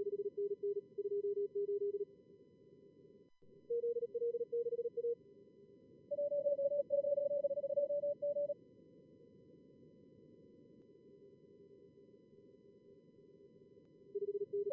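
Morse code beeps in quick bursts, at a few different pitches.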